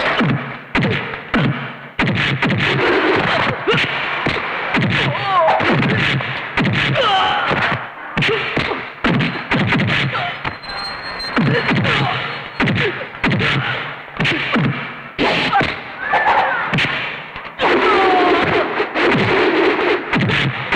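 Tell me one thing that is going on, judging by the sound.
Punches and kicks land with loud thuds.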